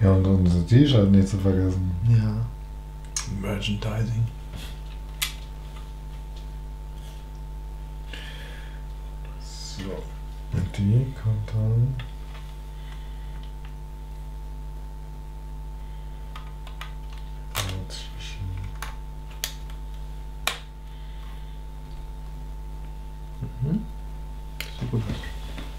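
Small plastic bricks click and snap together.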